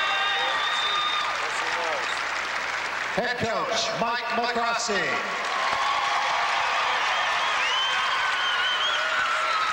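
A large crowd claps and applauds loudly in a big echoing hall.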